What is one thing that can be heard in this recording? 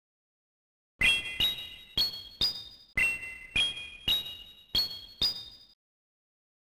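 Bright game chimes ring out in quick, rising steps.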